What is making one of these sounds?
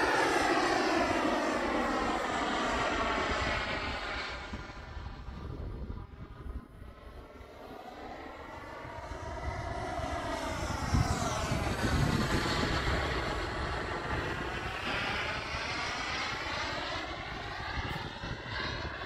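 A jet aircraft roars high overhead, its sound swelling and fading as it passes.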